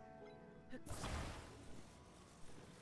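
A shimmering magical whoosh bursts out loudly.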